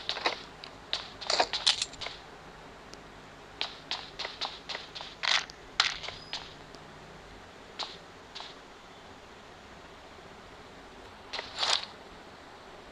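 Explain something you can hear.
Rifle shots crack in short, sharp bursts.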